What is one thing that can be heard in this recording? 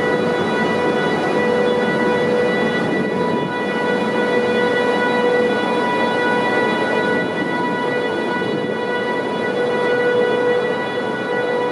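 A long freight train rumbles and clatters steadily past close by.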